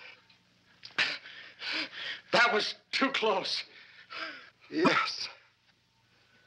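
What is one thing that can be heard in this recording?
A man speaks in a choked, gasping voice.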